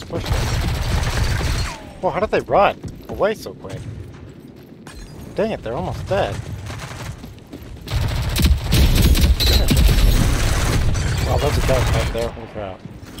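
Rapid gunfire bursts at close range.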